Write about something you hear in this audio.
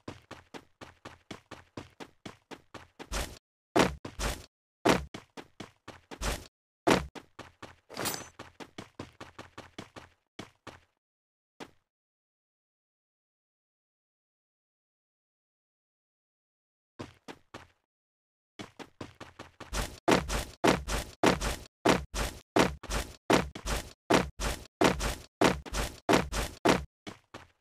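Footsteps run quickly over hard ground in a game.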